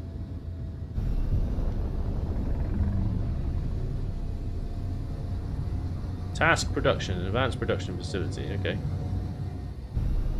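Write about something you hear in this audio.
A spacecraft engine thrusts with a low, steady rumble.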